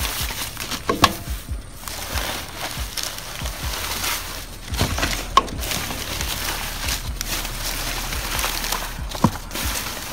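Small objects clatter and knock.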